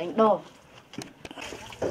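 Water splashes softly in a basin.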